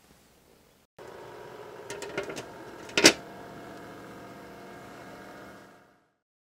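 A small appliance motor hums steadily.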